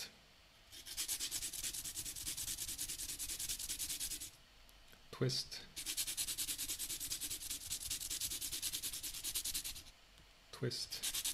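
A pencil lead scrapes back and forth on sandpaper in quick, even strokes.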